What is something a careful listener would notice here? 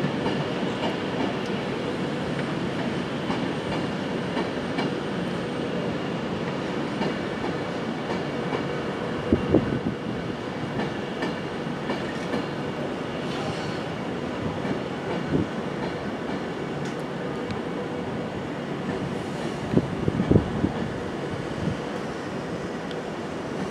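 A train rumbles slowly past with a steady hum.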